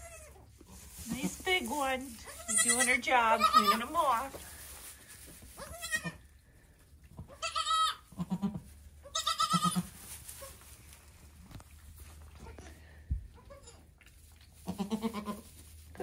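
A goat bleats loudly, again and again.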